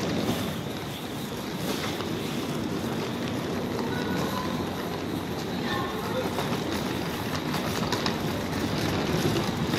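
A suitcase's wheels rumble across a hard floor.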